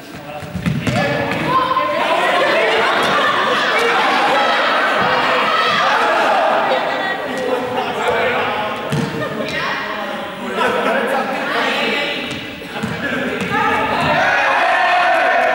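A group of children chatter and call out in a large echoing hall.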